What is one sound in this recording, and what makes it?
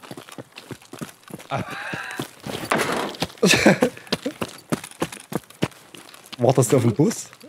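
Footsteps crunch on gravel and pavement.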